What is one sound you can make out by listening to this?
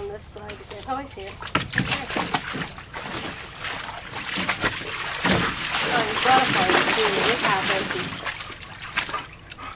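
A dog splashes and paws loudly at water in a small pool.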